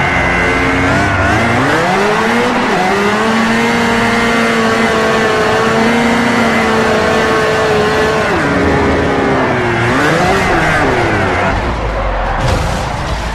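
A four-cylinder sports car engine revs high while drifting.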